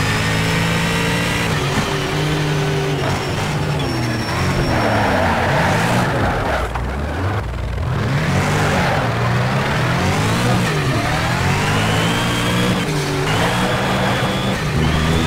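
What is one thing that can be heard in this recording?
A racing car engine roars and revs up and down through the gears.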